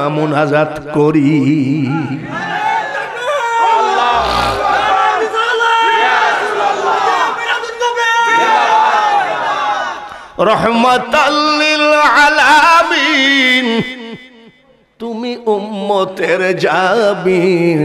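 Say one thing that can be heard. An elderly man preaches with animation into a microphone, his voice loud and echoing through loudspeakers.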